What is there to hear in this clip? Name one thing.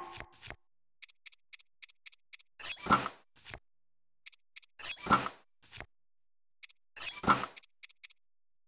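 Short menu clicks tick in quick runs.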